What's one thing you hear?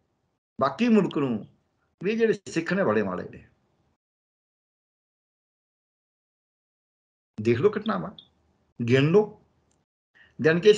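An elderly man speaks with animation over an online call, pausing between phrases.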